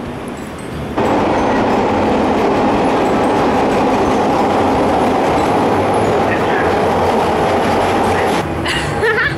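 A subway train roars into the station and rumbles past close by.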